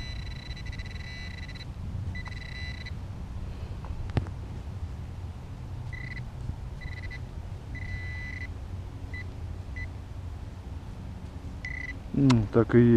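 A metal detector beeps in short high tones.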